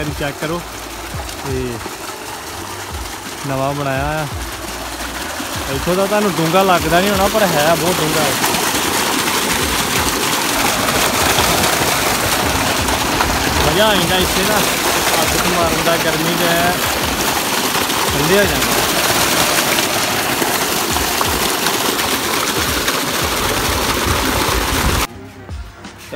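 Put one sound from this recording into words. Water gushes loudly from a pipe and splashes into a full tank.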